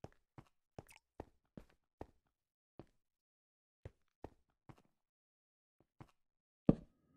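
Footsteps tap on stone at an even pace.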